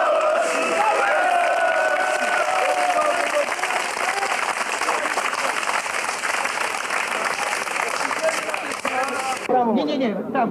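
A crowd of men shouts and chants outdoors.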